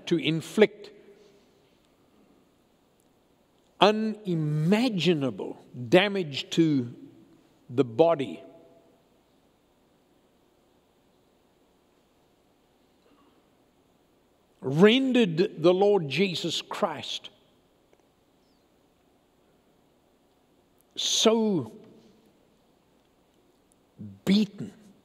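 An elderly man speaks slowly and earnestly, with long pauses.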